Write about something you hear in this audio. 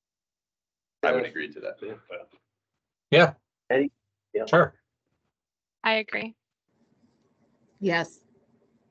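A man speaks calmly in short phrases, heard through an online call.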